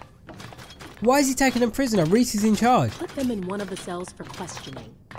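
A woman speaks firmly, giving an order.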